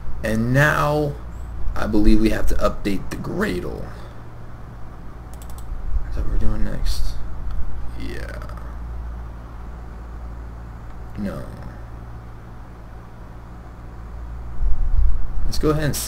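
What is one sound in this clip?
A young man speaks calmly into a close microphone, with pauses.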